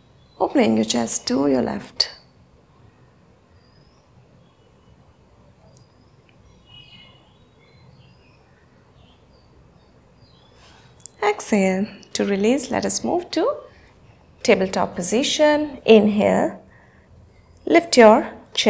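A young woman speaks calmly and clearly, giving instructions.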